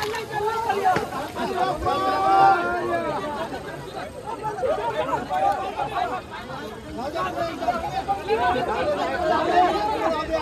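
Water splashes as men wade and throw water.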